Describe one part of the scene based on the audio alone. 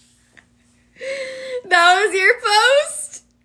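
A young woman laughs loudly close by.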